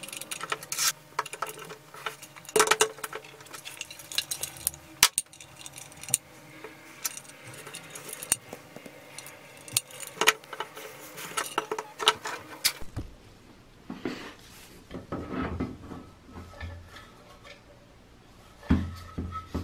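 A metal lamp housing clanks and knocks as hands handle it.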